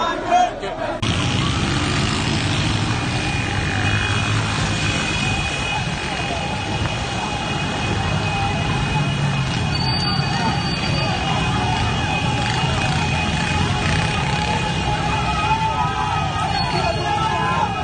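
A crowd clamours outdoors.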